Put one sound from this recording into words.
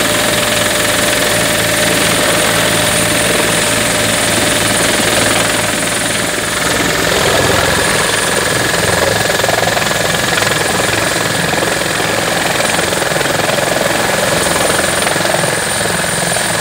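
A helicopter's engine whines steadily.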